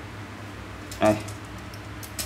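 A metal tape measure clicks and rattles as it is pulled out.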